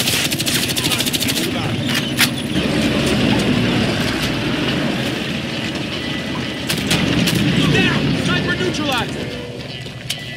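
A heavy tank engine rumbles low and steady.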